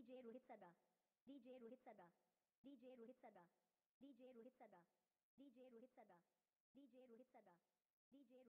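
A woman's sung phrase repeats again and again, through a loudspeaker.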